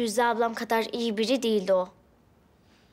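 A young girl speaks with animation, close by.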